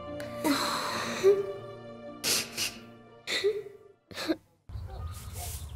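A young girl speaks nearby.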